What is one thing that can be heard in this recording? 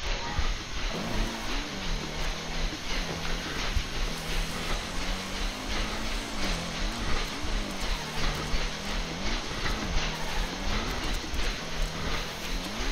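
A motorbike engine hums and revs up and down.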